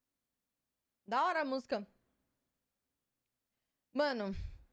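A young woman talks calmly into a close microphone.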